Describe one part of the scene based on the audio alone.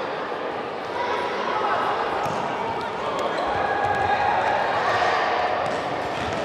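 Young players shout to each other across an echoing hall.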